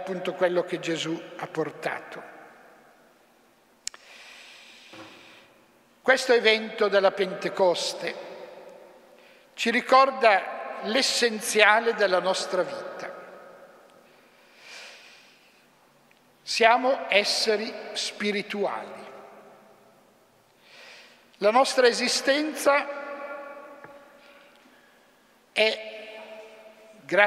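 An elderly man speaks slowly and calmly through a microphone in a large echoing hall.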